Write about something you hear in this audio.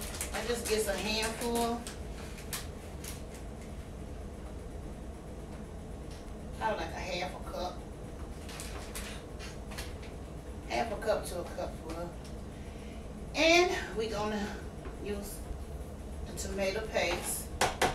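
A middle-aged woman talks casually close by.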